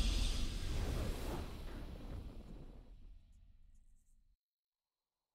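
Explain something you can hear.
A triumphant victory fanfare from a video game rings out and fades away.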